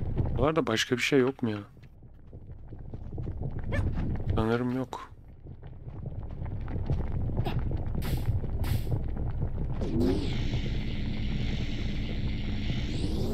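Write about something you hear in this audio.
Molten lava bubbles and rumbles low.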